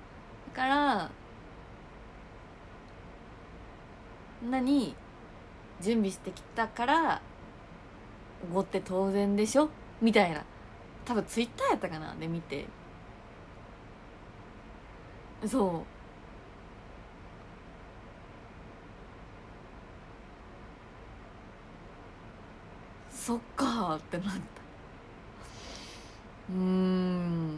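A young woman speaks softly and expressively close by, in short bursts with pauses.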